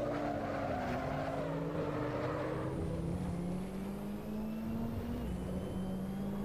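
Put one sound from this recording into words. A racing car engine roars steadily, its pitch stepping as it shifts gears.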